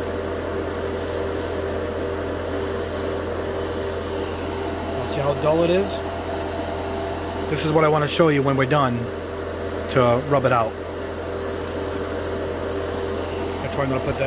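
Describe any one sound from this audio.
An airbrush hisses in short bursts of spray.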